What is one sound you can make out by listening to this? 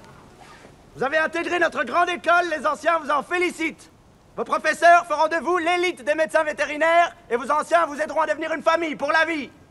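A young man shouts a speech through a loudspeaker.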